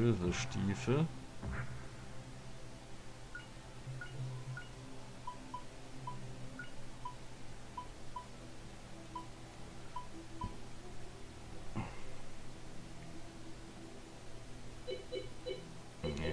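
Soft game music plays steadily in the background.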